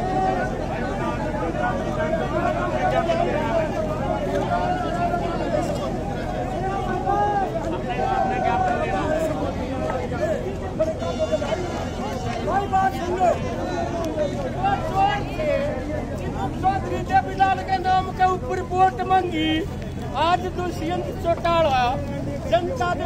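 A crowd of men chants and shouts outdoors.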